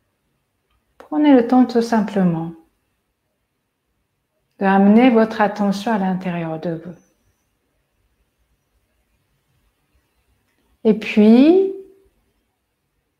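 A young woman speaks slowly and calmly, close by.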